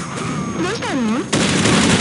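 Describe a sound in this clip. A grenade explodes with a loud boom.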